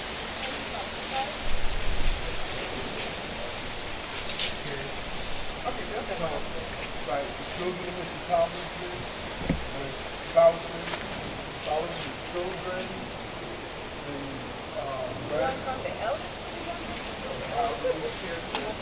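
Several adults talk quietly nearby, outdoors.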